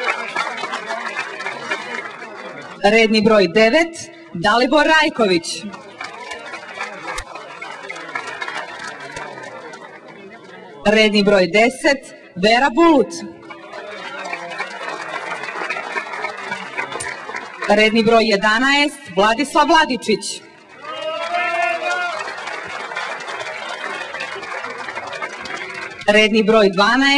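A crowd applauds and cheers steadily.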